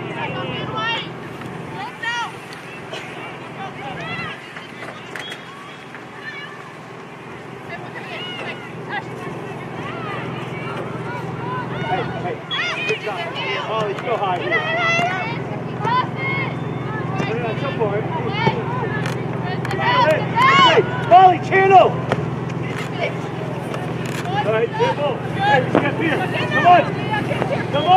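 Spectators shout and cheer from the sidelines outdoors.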